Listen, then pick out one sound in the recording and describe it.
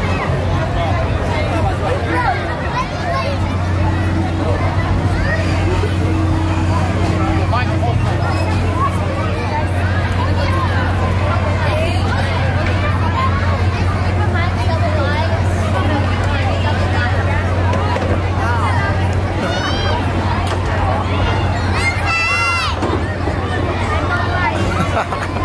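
A crowd of people chatter all around outdoors.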